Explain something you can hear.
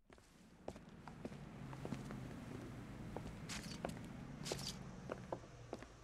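Footsteps walk on pavement.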